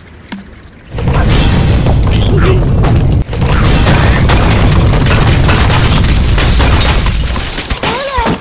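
Wooden structures crash and collapse loudly.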